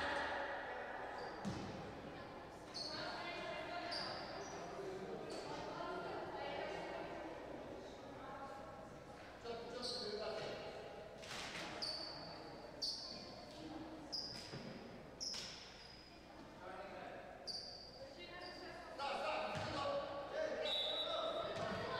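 Sneakers squeak sharply on a hardwood court, echoing in a large hall.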